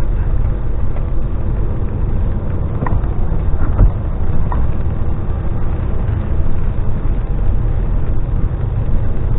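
A large vehicle's engine rumbles steadily while driving.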